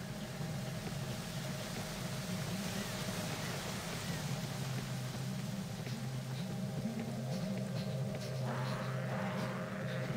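Magic spells crackle and whoosh in a fantasy battle.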